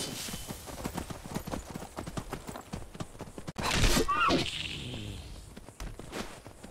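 Horse hooves clop quickly on stone.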